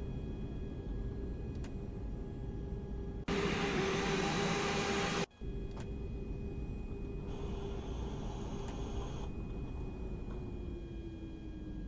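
A jet engine hums steadily.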